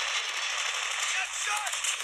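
Rapid gunfire rattles from a rifle.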